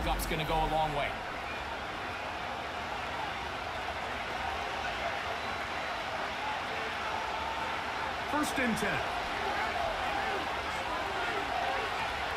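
A large stadium crowd murmurs and cheers steadily in the background.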